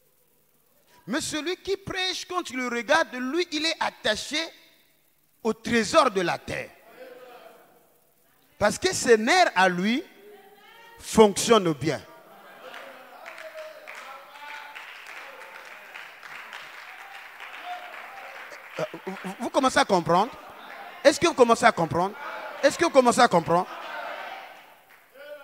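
A man preaches with animation into a microphone in an echoing hall.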